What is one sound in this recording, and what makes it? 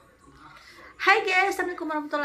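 A young woman speaks cheerfully close to the microphone.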